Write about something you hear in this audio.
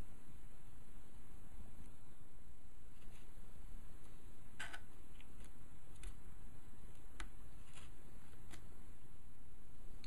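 A metal tool scrapes sticky glue off a speaker's rim.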